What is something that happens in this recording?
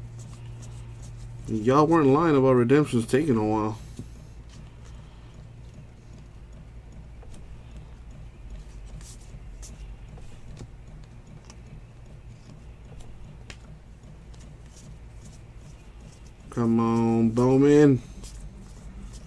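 Trading cards rustle and slide against each other as they are flipped through by hand.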